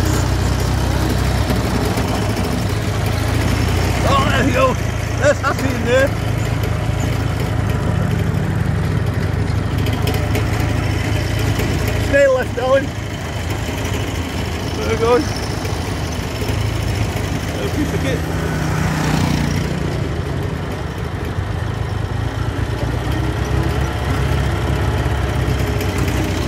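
A motorcycle engine rumbles while riding.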